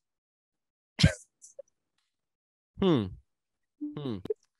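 Several young men laugh over an online call.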